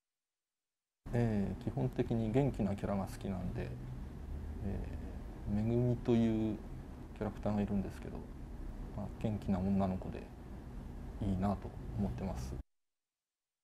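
A man speaks calmly and steadily, close by.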